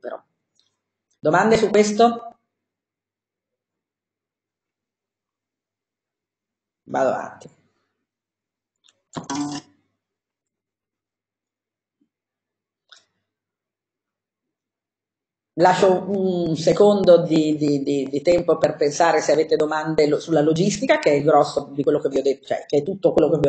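A woman speaks calmly through an online call microphone, with long pauses.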